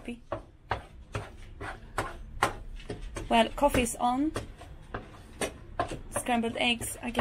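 A wooden spatula scrapes and taps against a frying pan.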